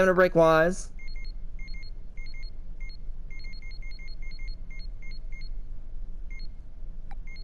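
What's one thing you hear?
Short electronic menu blips tick rapidly, again and again.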